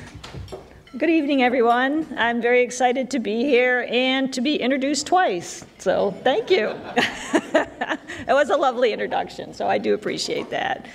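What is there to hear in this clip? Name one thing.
A middle-aged woman speaks calmly through a microphone in a large hall.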